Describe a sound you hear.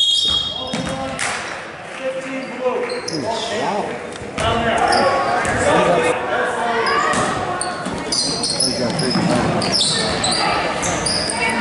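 A crowd of people talk and call out, echoing in a large hall.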